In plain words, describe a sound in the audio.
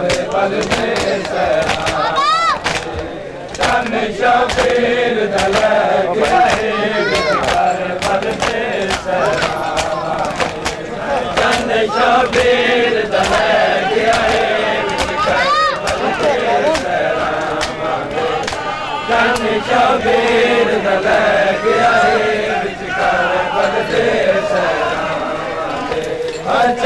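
A large crowd of men chant loudly outdoors.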